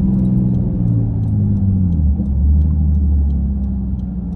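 A car engine hums and winds down as the car slows to a stop.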